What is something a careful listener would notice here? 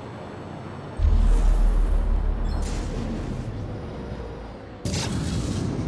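A deep boost rumbles suddenly and slowly fades.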